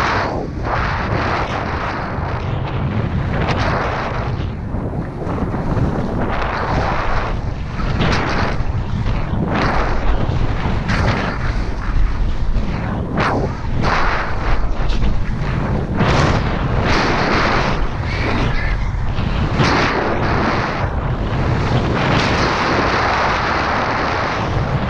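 A snowboard scrapes and hisses over snow.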